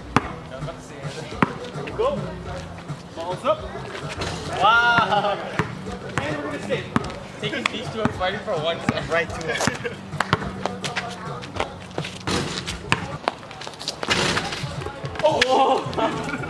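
A basketball bounces on pavement.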